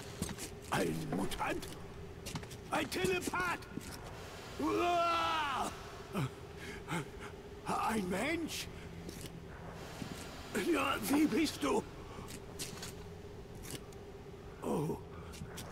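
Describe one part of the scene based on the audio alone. A middle-aged man shouts excitedly, close by.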